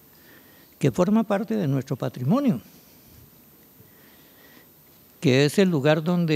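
An elderly man speaks calmly into a microphone, heard through loudspeakers in a large echoing hall.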